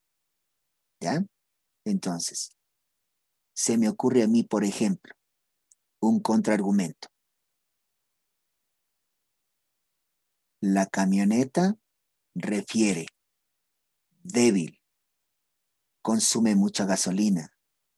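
A middle-aged man speaks calmly over an online call, in short phrases with pauses.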